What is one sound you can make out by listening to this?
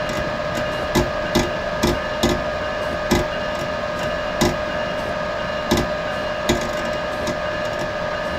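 Train wheels clack over rail joints at uneven intervals.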